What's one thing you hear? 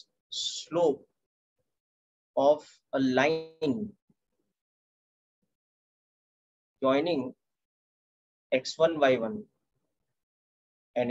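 A young man explains calmly in short phrases, heard through an online call.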